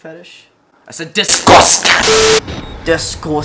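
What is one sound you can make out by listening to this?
Static hisses loudly in a burst.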